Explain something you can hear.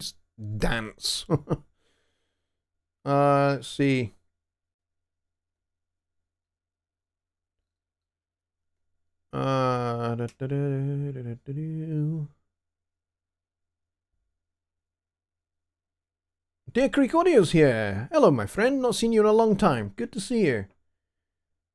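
A middle-aged man talks calmly into a close microphone, in short bursts with pauses.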